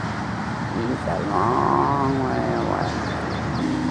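A bald eagle gives a series of high chirping calls.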